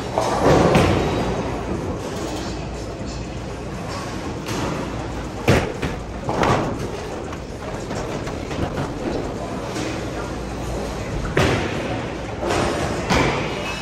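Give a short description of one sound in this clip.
A bowling ball thuds onto a lane.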